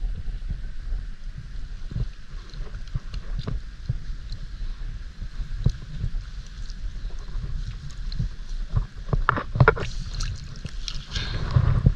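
A gloved hand splashes and sloshes in shallow water.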